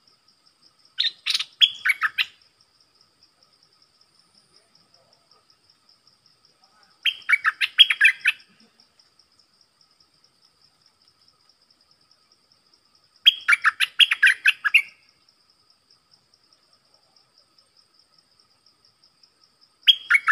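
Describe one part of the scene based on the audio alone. A caged bird sings loud bursts of clear whistling song, with pauses between.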